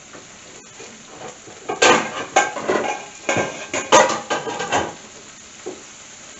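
Vegetables sizzle softly in a frying pan.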